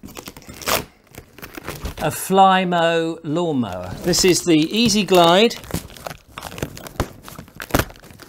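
Cardboard rustles and scrapes as a man handles a box.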